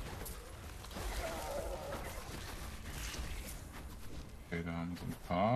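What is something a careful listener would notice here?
Magic blasts crackle and thud as creatures are struck in a fight.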